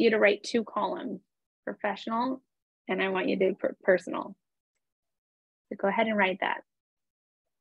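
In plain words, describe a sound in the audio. A woman speaks with animation through a microphone on an online call.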